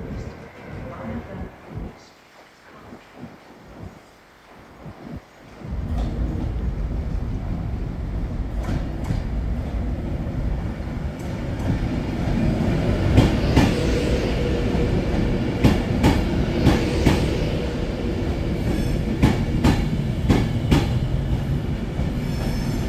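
A train approaches and roars past close by.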